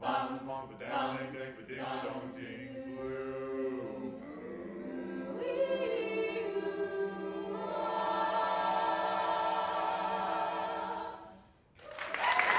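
A young mixed choir sings in harmony without instruments.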